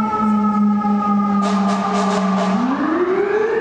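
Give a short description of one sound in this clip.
A fire truck's air horn blares loudly.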